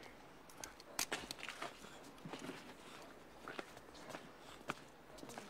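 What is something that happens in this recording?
Boots step on pavement.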